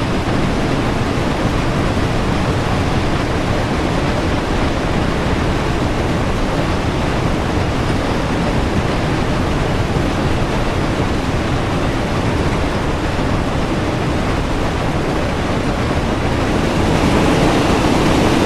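A steam locomotive rumbles and clatters steadily along the track.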